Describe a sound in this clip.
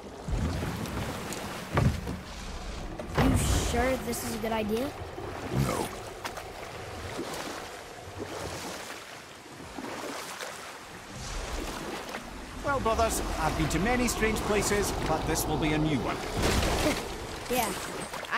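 Water laps and ripples steadily.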